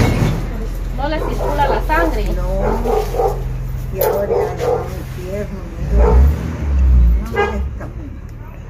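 An elderly woman speaks in a frail, shaky voice close by.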